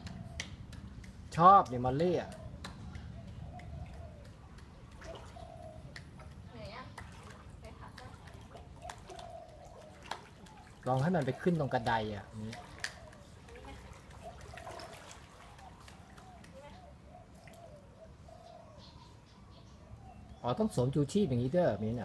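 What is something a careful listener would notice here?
Water splashes softly as a small dog paddles.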